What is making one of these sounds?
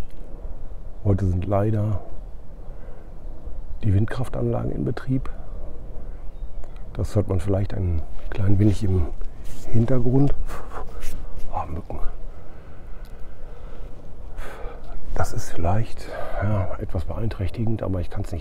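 A middle-aged man talks calmly and close to the microphone, outdoors.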